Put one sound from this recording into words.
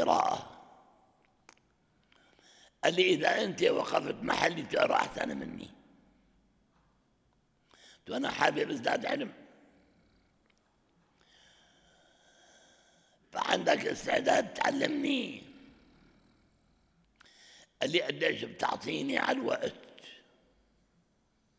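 An elderly man speaks slowly and with feeling into a microphone, in bursts with long pauses.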